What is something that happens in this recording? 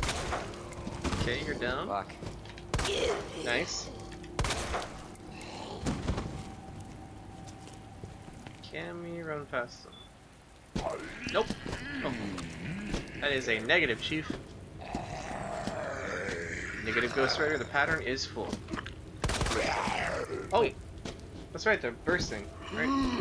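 A zombie groans and snarls nearby.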